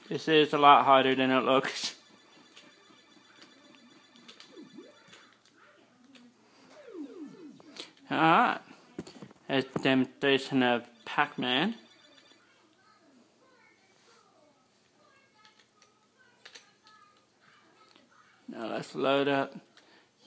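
Electronic arcade game tunes play in short, loud bursts.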